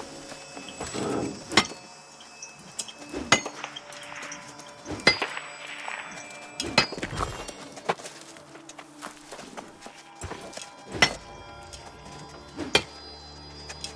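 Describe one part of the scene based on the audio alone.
A pickaxe strikes rock with sharp, ringing blows.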